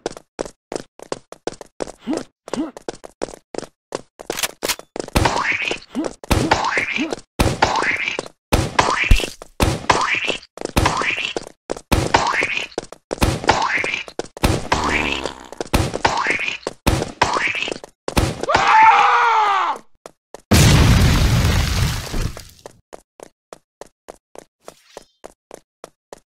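Quick footsteps patter steadily.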